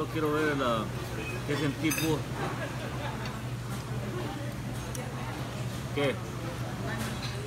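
People talk in the background of a busy room.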